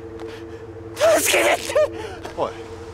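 A young man shouts.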